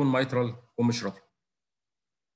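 A man speaks calmly into a microphone, heard over an online call.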